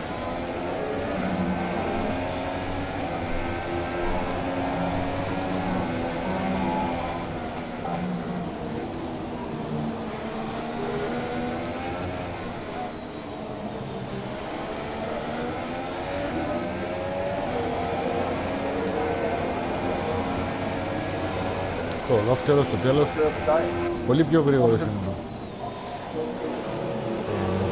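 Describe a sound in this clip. A racing car engine roars at high revs, rising and falling as it shifts gears.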